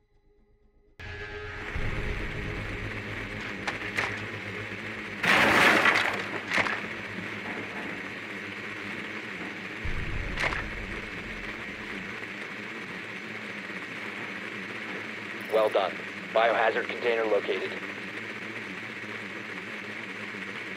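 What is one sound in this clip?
A small remote-control drone whirs steadily as it rolls across a hard floor.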